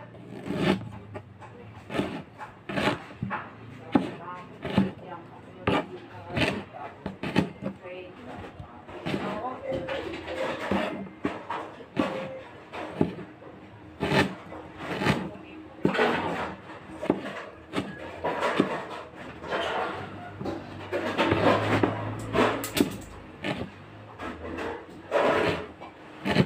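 A knife chops on a cutting board in sharp, uneven knocks.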